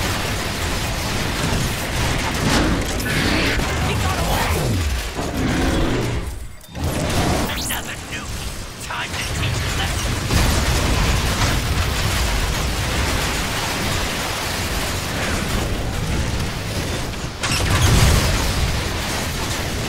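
A beam weapon blasts with a roaring, crackling rush.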